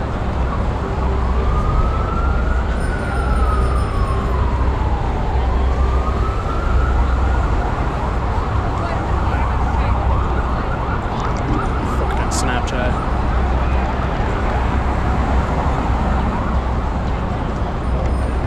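A busy crowd chatters outdoors on a noisy city street.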